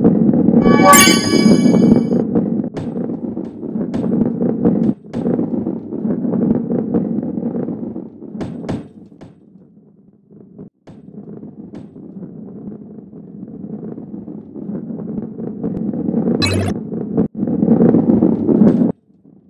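A ball rolls and rumbles steadily along a track.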